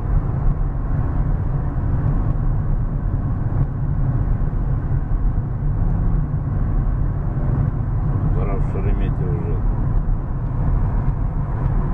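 A car engine hums steadily with road noise from inside the moving car.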